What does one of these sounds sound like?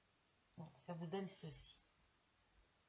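An elderly woman speaks calmly close by.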